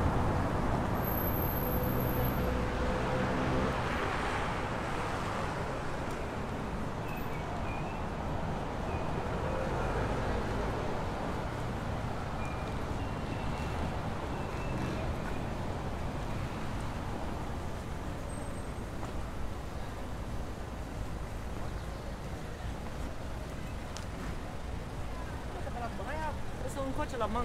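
Traffic hums along a busy street nearby.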